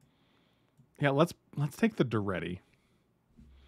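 A man speaks briefly and with animation, close to a microphone.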